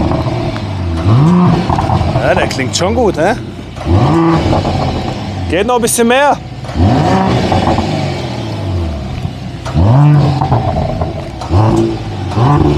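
A powerful car engine revs hard again and again through a loud exhaust.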